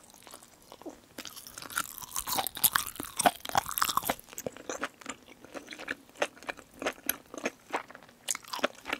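A young woman chews and slurps noodles close to a microphone.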